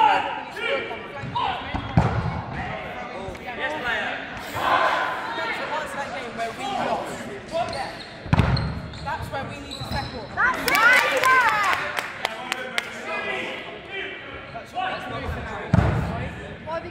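A ball bounces on a hard floor in a large echoing hall.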